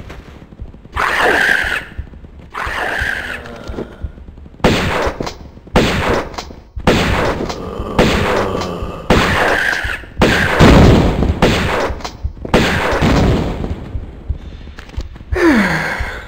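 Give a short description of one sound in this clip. Pistol shots fire in rapid bursts in an echoing hall.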